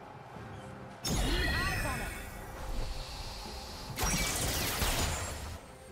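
Magic spell effects whoosh and crackle in a video game battle.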